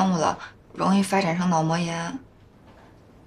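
A young woman speaks earnestly up close.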